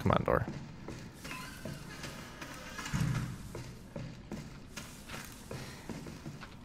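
Footsteps crunch slowly over rubble.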